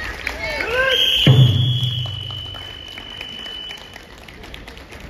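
A referee's whistle blows one long shrill blast.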